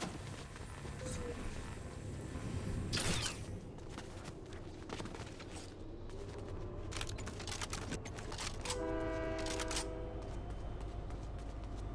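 Quick footsteps patter on stone paving.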